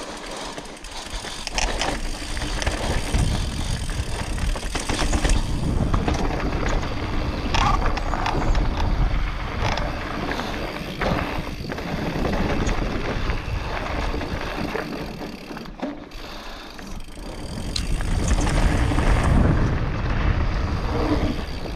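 Wind rumbles across a microphone.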